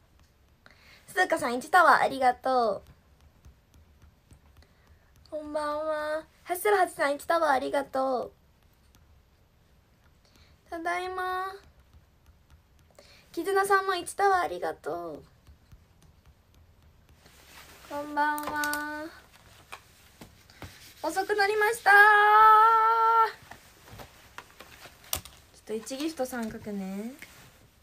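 A young woman talks close to a phone microphone, with animation, in short bursts.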